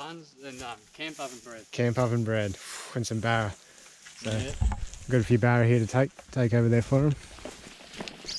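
A man speaks close up, calmly.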